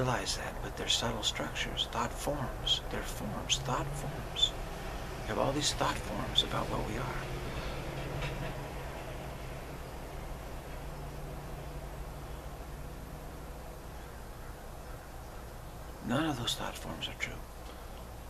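A middle-aged man speaks calmly, close to the microphone, with pauses.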